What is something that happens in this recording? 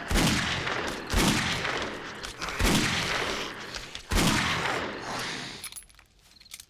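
A gun fires four loud shots, each followed by a long echoing ring.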